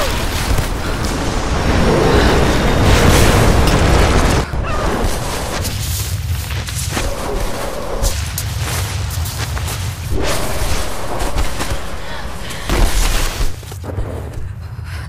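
An avalanche of snow roars and rumbles loudly down a mountainside.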